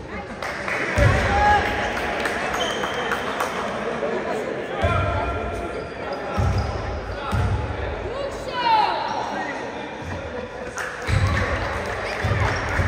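A basketball bounces with dull thuds on the court.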